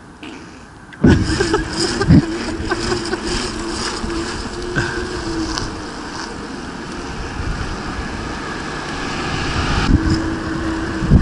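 Bicycle tyres roll on asphalt.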